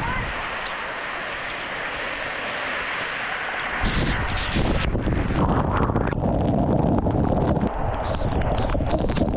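Water sprays hard and splashes onto a wet surface, growing louder and closer.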